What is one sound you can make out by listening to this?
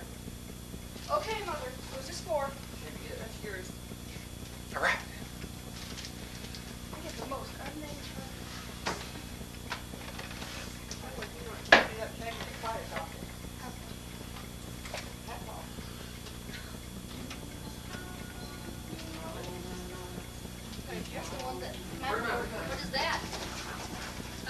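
A young woman and young men talk and laugh nearby.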